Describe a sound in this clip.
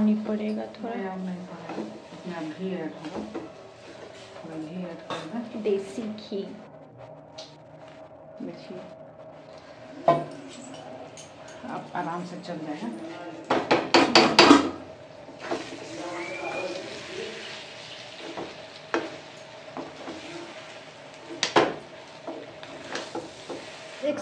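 A metal spatula scrapes and stirs food in a metal pan.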